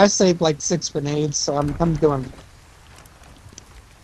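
Heavy wooden doors creak open.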